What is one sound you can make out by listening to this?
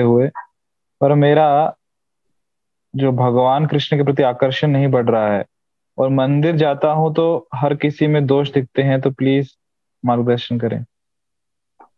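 A man chants in a steady, sung voice, heard through an online call.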